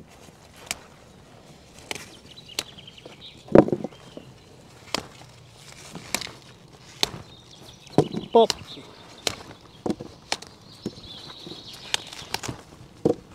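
Sprouts snap off a stalk with sharp crisp cracks.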